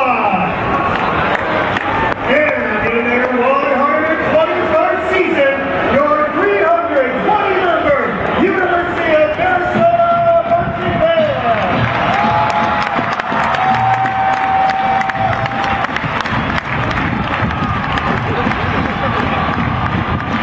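A marching band plays brass and drums in a large open stadium.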